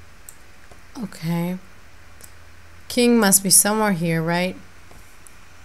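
A young woman speaks calmly and close into a microphone.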